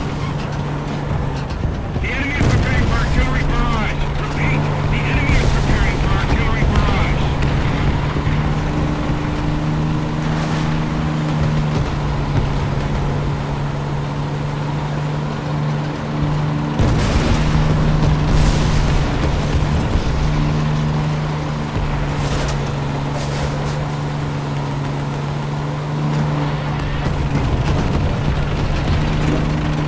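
A tank engine rumbles as the tank drives.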